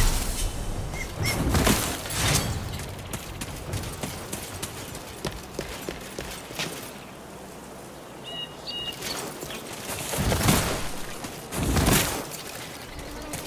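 Metal armor clanks with each running step.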